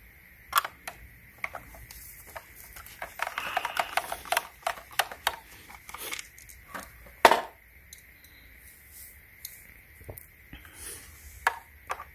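Plastic parts of a handheld vacuum click and rattle as they are handled.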